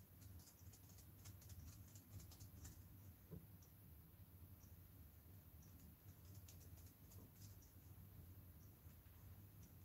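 Small plastic doll parts tap and click softly as they are handled.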